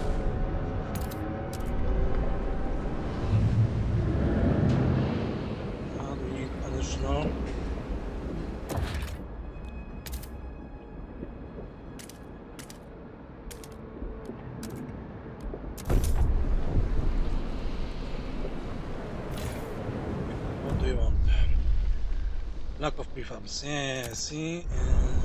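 Short sharp clicks sound now and then.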